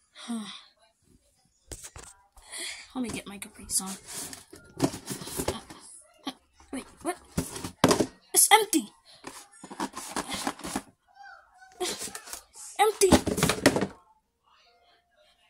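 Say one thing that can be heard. Cardboard boxes thump and scrape on a hard floor.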